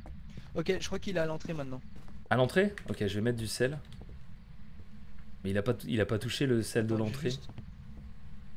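A man talks with animation into a close microphone.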